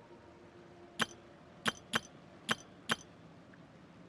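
Soft interface clicks tick several times in quick succession.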